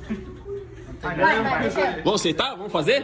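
Young men shout and laugh loudly with excitement.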